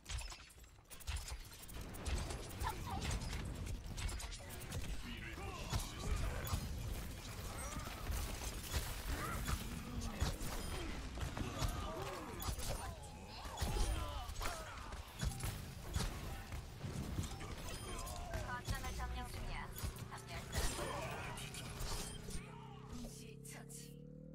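Throwing stars whoosh and thud in quick bursts.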